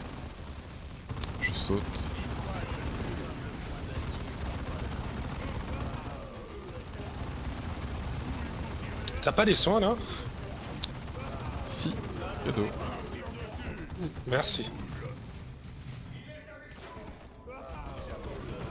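Gunfire rattles in a battle.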